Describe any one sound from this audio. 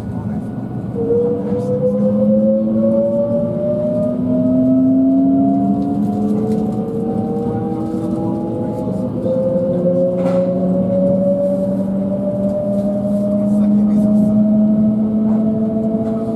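A train's motors whine, rising steadily in pitch as it speeds up.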